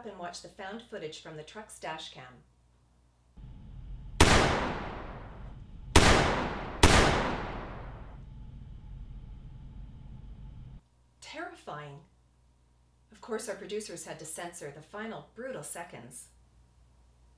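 A middle-aged woman speaks calmly and clearly, close to a microphone.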